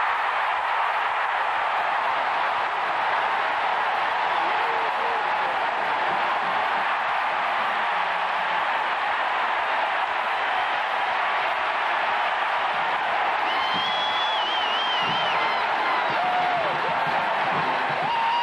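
A huge stadium crowd cheers and roars loudly.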